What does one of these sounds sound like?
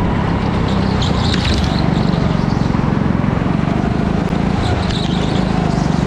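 Kart tyres squeal on the smooth track through turns.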